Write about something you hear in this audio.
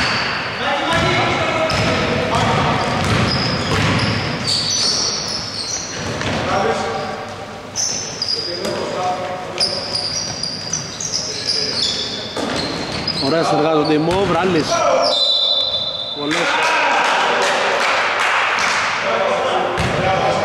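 A basketball bounces on a hard floor in an echoing hall.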